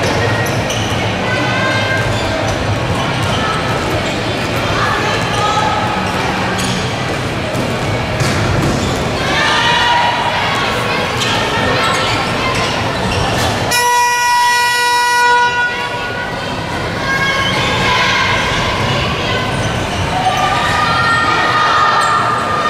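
Children shout and cheer in a large echoing hall.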